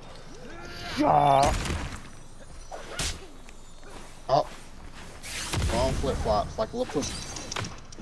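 Cartoonish punches land with heavy thuds.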